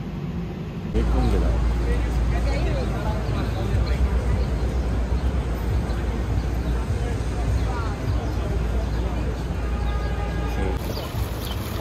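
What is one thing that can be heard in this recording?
City traffic hums and rumbles along a busy street.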